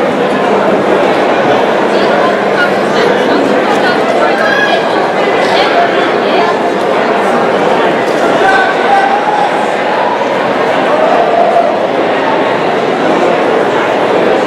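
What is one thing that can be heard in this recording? A large indoor crowd chatters loudly throughout.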